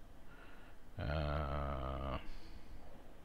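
A middle-aged man speaks briefly into a headset microphone, with a drawn-out voice.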